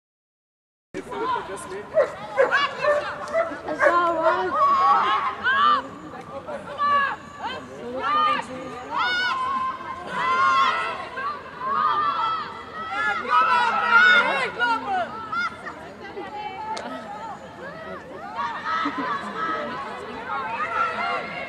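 Spectators shout and cheer close by outdoors.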